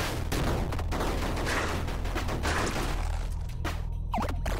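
Retro video game sound effects crackle and burst.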